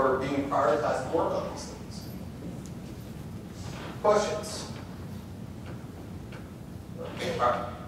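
A man speaks calmly through a microphone in a large echoing hall, with pauses.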